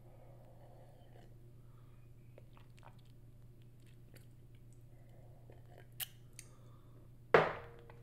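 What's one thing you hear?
A woman sips a drink from a mug.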